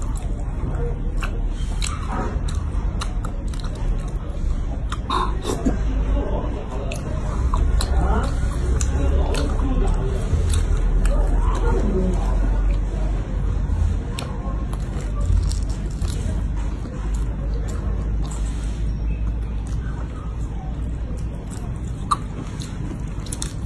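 Crayfish shells crack and crunch in gloved hands.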